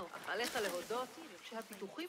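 Leaves rustle as something pushes through bushes.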